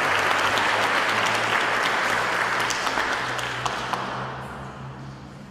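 An audience applauds in a large echoing hall, then the applause fades.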